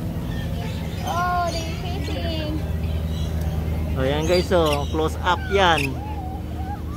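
Parrots squawk and chatter nearby.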